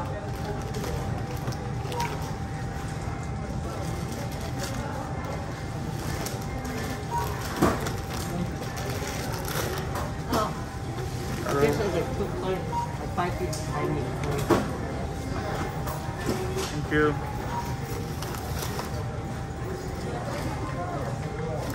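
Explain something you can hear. Plastic bags rustle and crinkle as groceries are handled.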